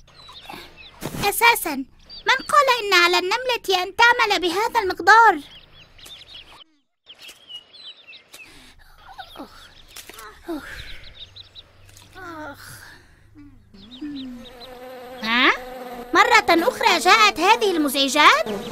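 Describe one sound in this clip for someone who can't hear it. A high, cartoonish voice speaks with animation, close to the microphone.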